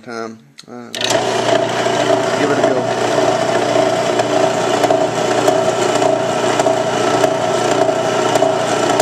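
A drill bit whirs as it cuts into metal.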